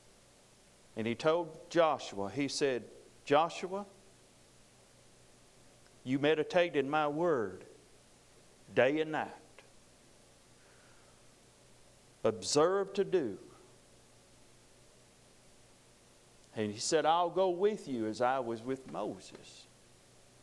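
A middle-aged man preaches forcefully into a microphone in short bursts with long pauses.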